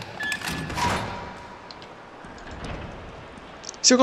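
A heavy metal door rumbles open.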